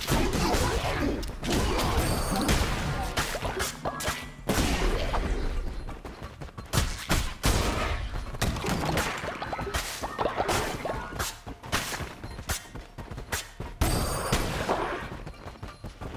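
Game sword slashes whoosh and hit in quick bursts.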